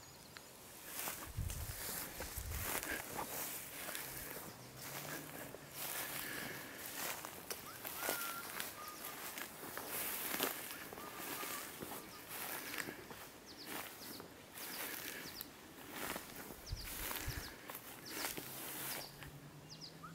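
Footsteps crunch on dry grass and dirt.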